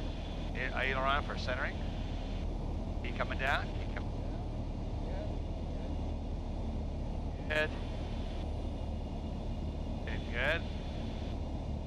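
A man speaks briefly through a headset intercom.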